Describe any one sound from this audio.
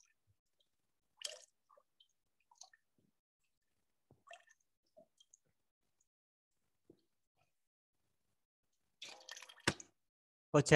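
Water dribbles from a man's mouth into a metal bowl.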